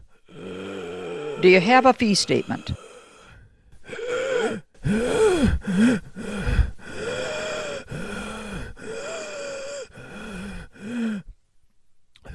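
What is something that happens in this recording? A woman speaks calmly and flatly.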